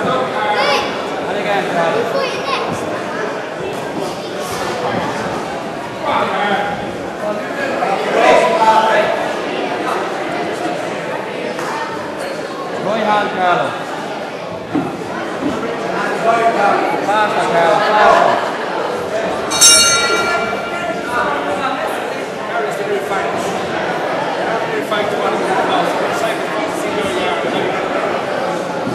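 A man calls out commands loudly in an echoing hall.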